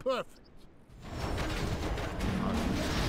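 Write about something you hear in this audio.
Magic bolts whoosh and strike.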